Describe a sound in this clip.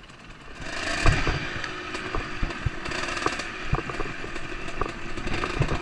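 A dirt bike's frame rattles and knocks over rough ground.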